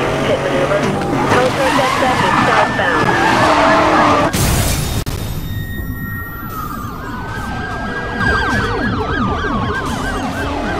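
Police sirens wail and rise and fall.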